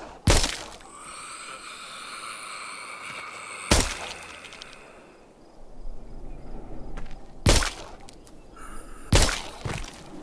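A pistol fires several loud shots.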